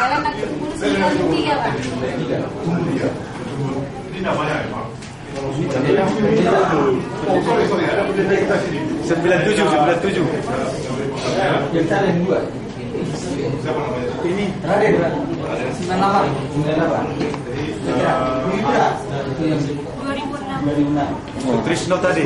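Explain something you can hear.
A group of men and women chat and laugh together close by.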